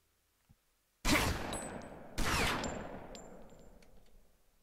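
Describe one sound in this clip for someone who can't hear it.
Shotguns blast twice, loud and sharp, with ringing tails.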